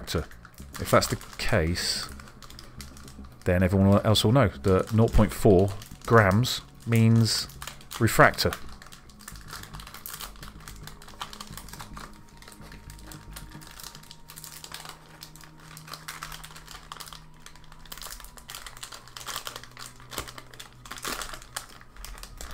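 A plastic wrapper crinkles and rustles as it is torn open.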